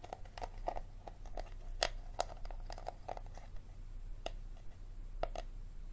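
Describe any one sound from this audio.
A plastic bottle crinkles and crackles as hands squeeze and twist it close by.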